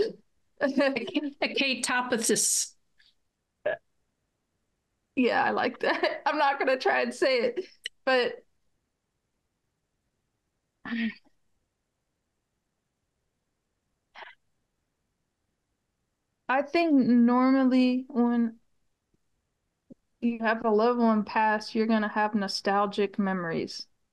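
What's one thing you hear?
A middle-aged woman speaks with animation over an online call.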